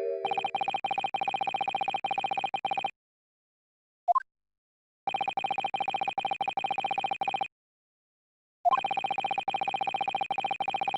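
Rapid, high electronic blips chatter in quick bursts.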